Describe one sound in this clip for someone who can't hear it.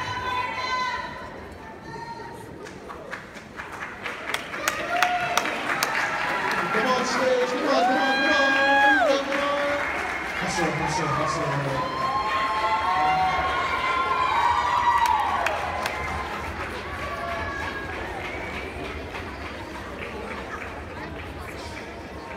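A crowd of girls cheers and screams loudly in a large hall.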